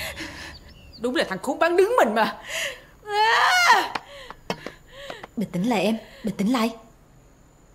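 A young woman speaks sharply.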